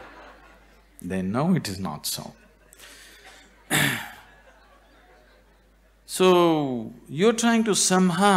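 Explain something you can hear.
An elderly man speaks expressively into a microphone, with pauses.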